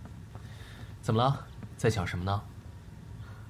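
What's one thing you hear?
A young man speaks gently, close by.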